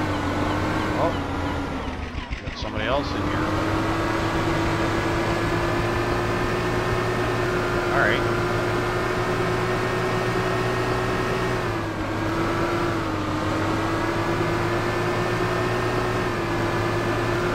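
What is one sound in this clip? Water splashes against a moving boat's hull.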